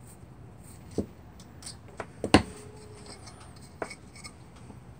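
Small metal parts click and clatter close by.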